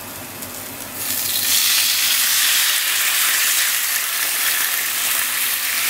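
Liquid is poured into a hot pan and hisses loudly.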